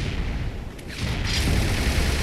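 A heavy weapon swings through the air with a whoosh.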